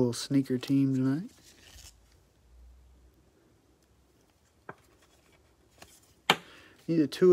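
Trading cards slide and tap against each other in gloved hands.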